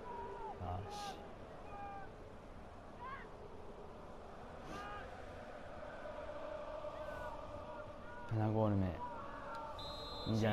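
A large stadium crowd cheers loudly.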